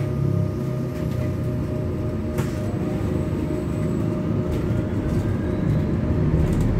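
A city bus drives along a street, its engine droning and humming inside the cabin.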